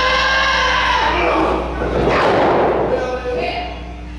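A wrestler thuds onto the ring mat.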